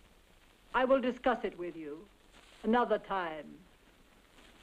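An elderly woman speaks sharply, close by.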